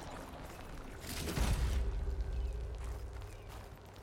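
A large mechanical creature crashes down close by.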